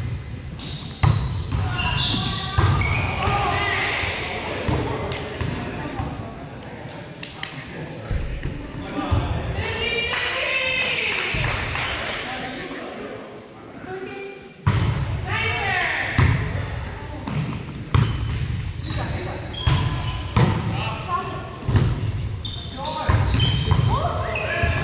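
Adult men and women call out and talk across the court.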